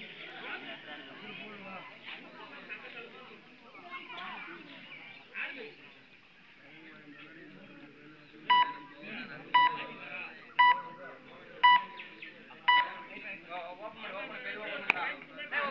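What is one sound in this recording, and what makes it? A crowd of young men and boys chatter and call out outdoors.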